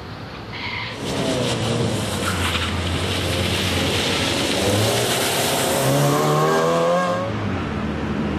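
A second rally car engine roars loudly, shifting gears as it races by.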